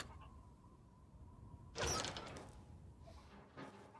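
A metal gate unlocks and creaks open.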